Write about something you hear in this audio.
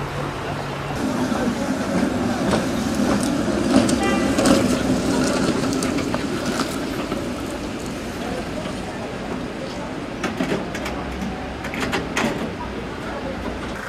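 A tram rumbles past on the rails.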